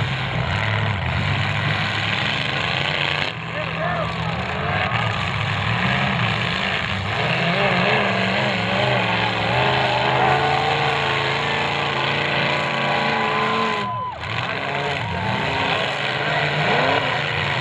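Car engines roar and rev loudly outdoors.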